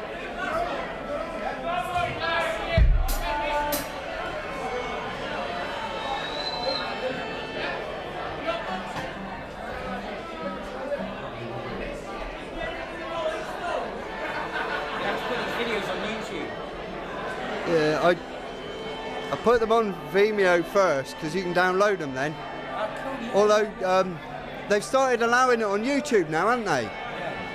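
A band plays live music loudly in a large echoing hall.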